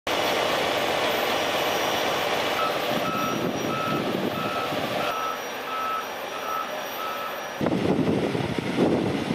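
A large truck engine rumbles nearby.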